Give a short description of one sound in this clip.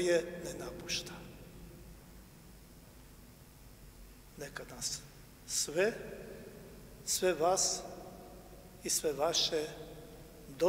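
An elderly man speaks slowly and solemnly through a microphone in a large echoing hall.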